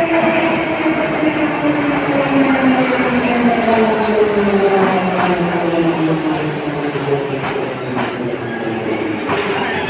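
Metal wheels rattle and clank on the rails.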